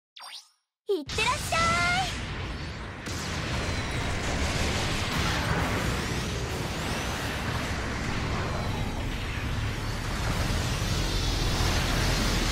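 Jet thrusters roar as a giant robot boosts forward.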